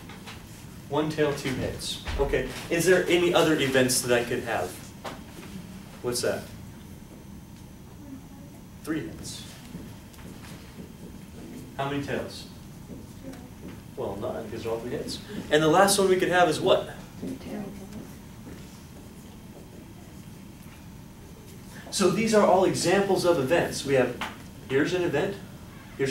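A man lectures calmly in a room with a slight echo.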